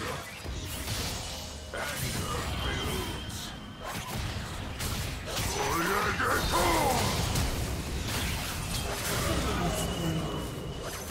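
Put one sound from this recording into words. Game combat effects clash, crackle and whoosh.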